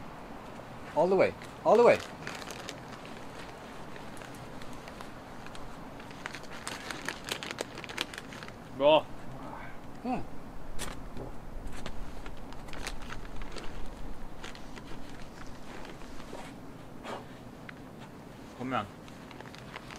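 A young man grunts and gasps with effort close by.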